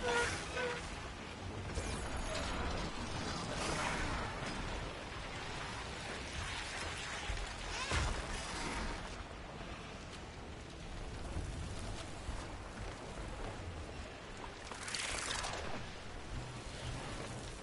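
Wind rushes past in loud swells as a large mechanical bird flies.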